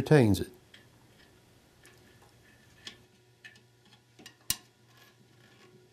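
Metal parts click and tap against each other.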